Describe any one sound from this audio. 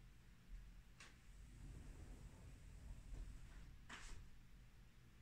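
A woman breathes deeply and slowly.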